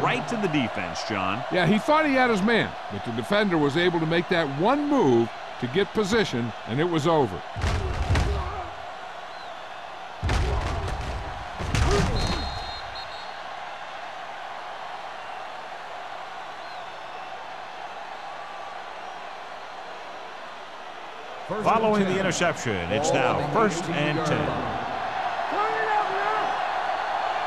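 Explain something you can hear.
A stadium crowd murmurs and roars steadily in the background.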